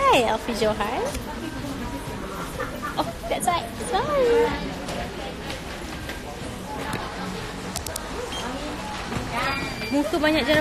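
A young woman talks with animation close to a phone's microphone.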